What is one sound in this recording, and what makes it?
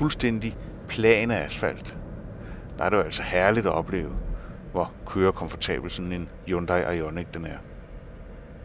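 A man speaks calmly and with animation, close by.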